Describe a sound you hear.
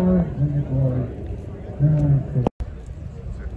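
A man speaks to a crowd outdoors.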